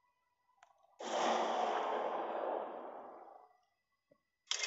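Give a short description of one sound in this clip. A shimmering magical whoosh swells and slowly fades.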